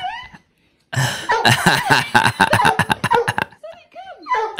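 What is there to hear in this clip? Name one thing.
A dog barks loudly.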